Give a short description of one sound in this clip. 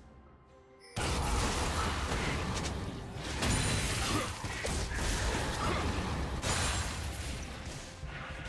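Game spells blast and crash in a chaotic fight.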